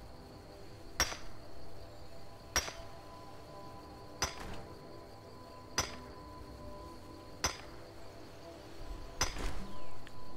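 A pickaxe strikes rock with sharp, ringing clinks at a steady pace.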